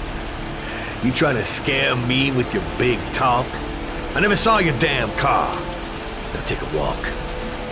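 A man answers in a deep, threatening voice.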